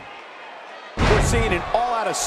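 A wrestler slams onto the mat with a heavy thud.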